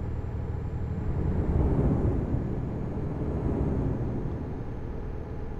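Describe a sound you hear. A truck engine roars louder as the truck turns.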